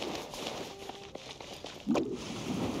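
Light footsteps patter quickly on dirt.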